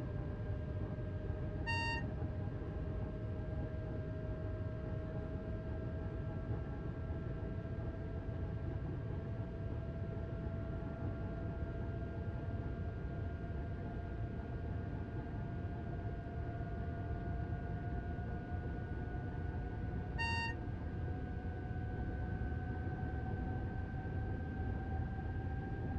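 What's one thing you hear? A train engine hums and whines, rising slowly in pitch as it speeds up.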